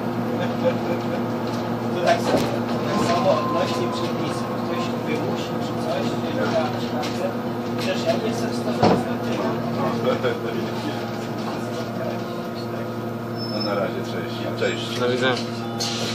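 A bus engine hums steadily from inside the vehicle as it drives.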